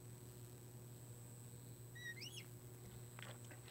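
A marker squeaks on a glass board.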